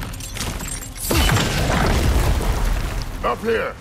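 A loud blast booms and rumbles.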